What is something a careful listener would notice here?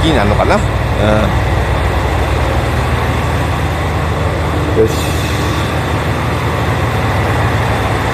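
A train rolls slowly away along a platform.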